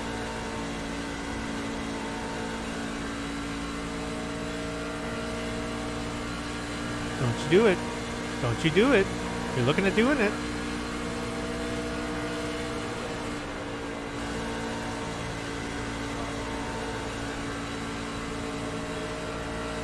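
A V8 race truck engine drones at full throttle, heard from inside the cab.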